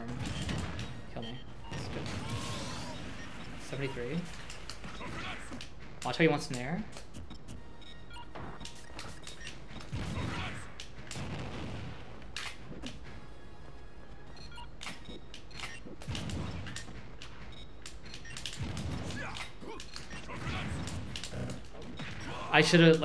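Game hits and explosions crack and thump.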